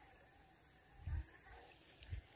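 A fishing lure splashes onto still pond water.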